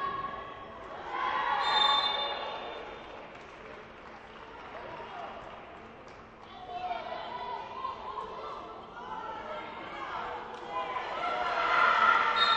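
Young women shout to each other across a large echoing hall.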